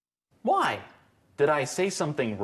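A man asks questions with animation.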